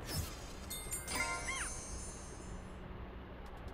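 A bright chiming jingle rings out briefly.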